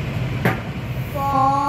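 A chunk of fruit drops into a metal bowl with a soft knock.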